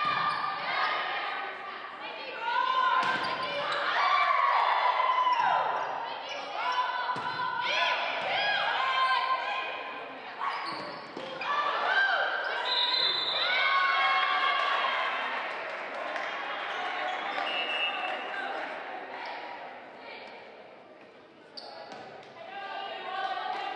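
Players shout to each other in a large echoing gym.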